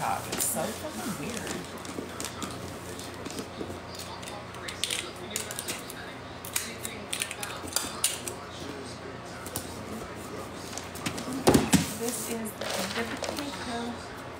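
Wrapping paper crinkles and rustles.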